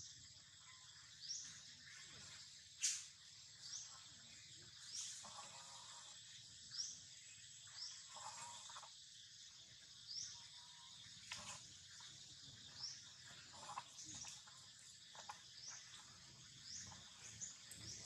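Grass rustles as small monkeys move about.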